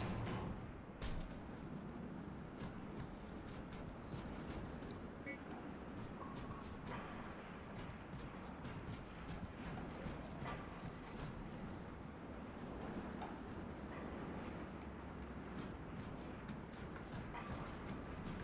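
Heavy metal footsteps clank on a metal walkway.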